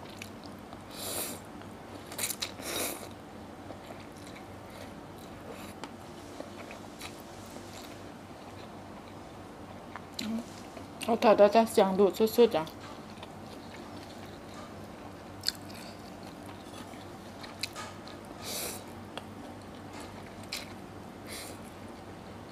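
A woman slurps noodles loudly, close by.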